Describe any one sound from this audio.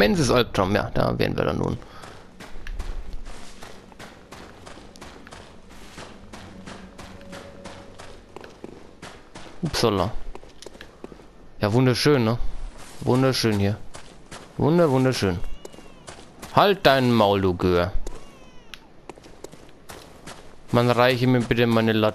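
Footsteps crunch steadily on gravel and dirt.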